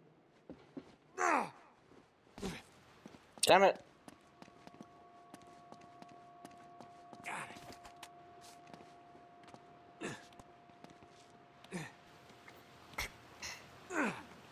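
A young man speaks in short bursts close to a microphone.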